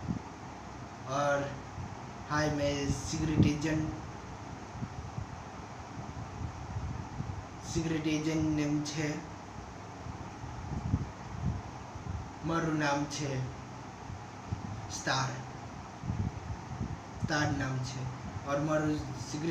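A young man talks close by, in short bursts.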